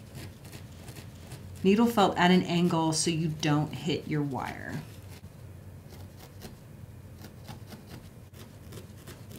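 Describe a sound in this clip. A felting needle pokes rapidly into soft wool with faint scratchy taps.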